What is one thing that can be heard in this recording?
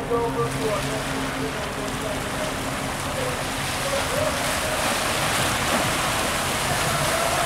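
A large ship's engines rumble low and steadily.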